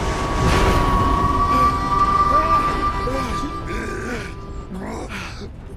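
A steam train rumbles loudly along the tracks.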